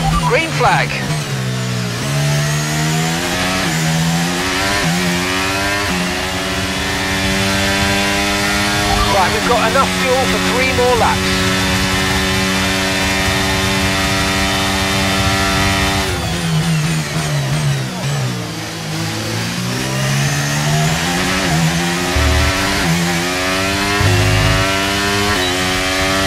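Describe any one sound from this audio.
A racing car engine screams at high revs, rising through the gears and dropping as it brakes.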